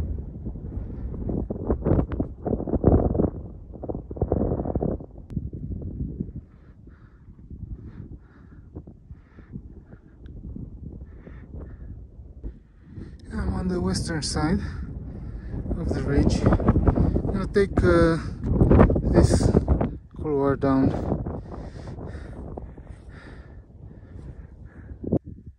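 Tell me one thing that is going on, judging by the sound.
Wind gusts and rumbles loudly against the microphone outdoors.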